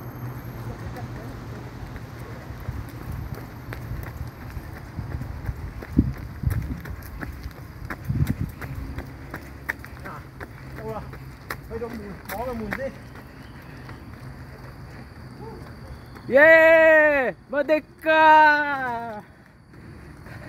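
Running footsteps patter on pavement.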